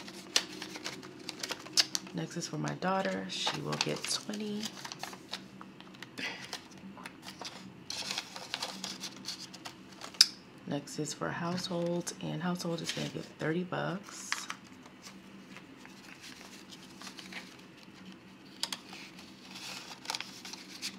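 Paper banknotes rustle and crinkle as they are handled.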